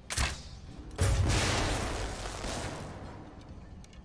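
A magical blast bursts with a loud rushing roar and fades.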